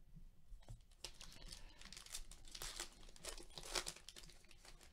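A plastic wrapper crinkles and tears as it is opened.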